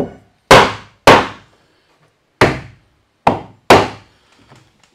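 A hammer strikes wood in sharp, quick blows.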